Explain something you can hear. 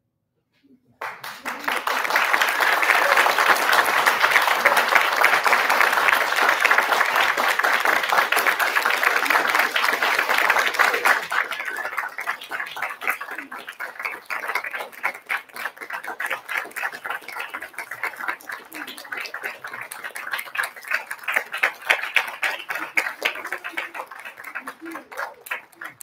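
An audience claps and cheers loudly, then the applause thins out.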